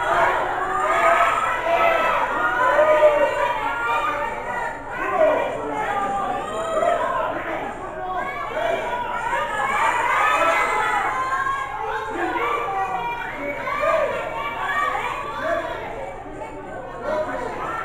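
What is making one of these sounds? A crowd of spectators chatters and calls out loudly in an echoing hall.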